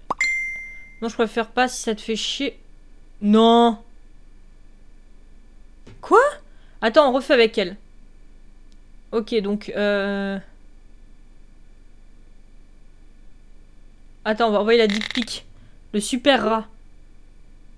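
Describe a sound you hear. A young woman speaks close into a microphone, with animation, in short bursts.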